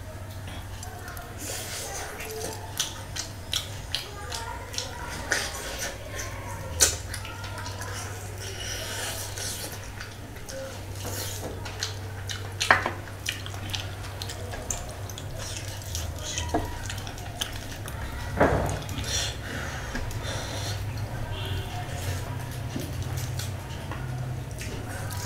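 A man chews food loudly and wetly, close to a microphone.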